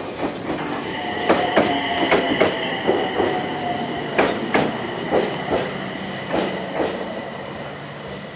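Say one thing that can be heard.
Train brakes squeal with a high, steady whine as the train slows.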